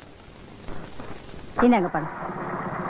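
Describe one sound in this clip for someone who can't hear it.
A middle-aged woman speaks calmly close by.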